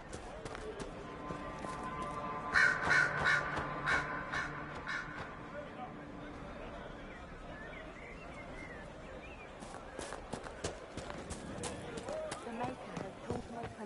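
Footsteps thud on the ground as a man runs.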